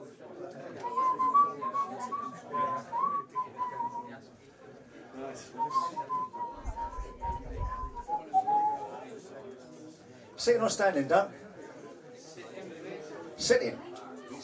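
A middle-aged man sings into a microphone.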